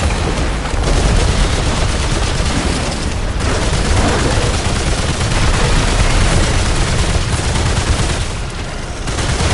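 A heavy gun fires rapid bursts.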